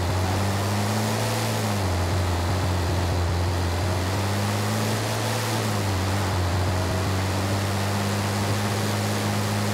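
A heavy truck engine roars steadily, rising and falling in pitch as it shifts gears.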